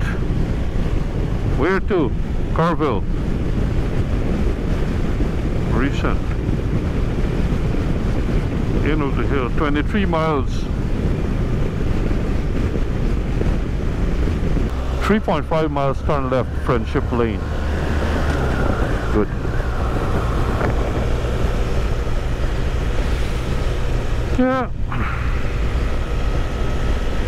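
Wind rushes and buffets loudly.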